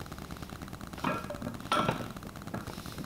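Heavy weight plates clank and rattle as a barbell lifts off the floor.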